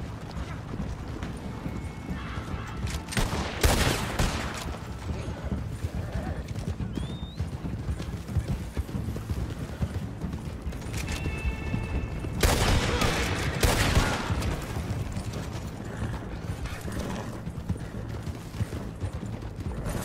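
Horse hooves pound steadily on a dirt track.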